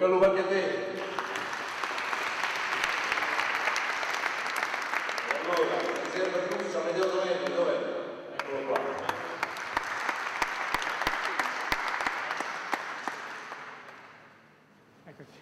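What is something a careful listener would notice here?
A crowd applauds steadily, then the clapping fades away.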